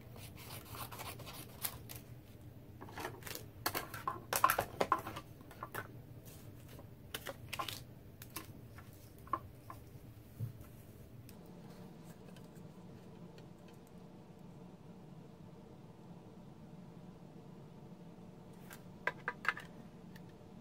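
Paper and thin plastic sheets rustle and click as they are handled.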